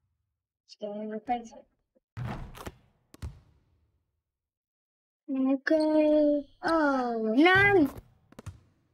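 A young boy speaks with animation close to a microphone.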